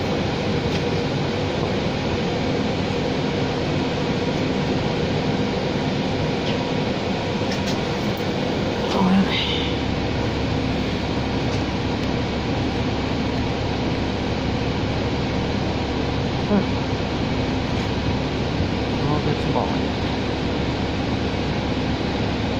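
A bus engine rumbles steadily while the bus drives along.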